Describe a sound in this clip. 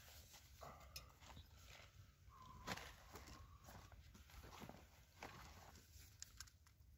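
Metal parts of a motorcycle clink and knock as a man handles them.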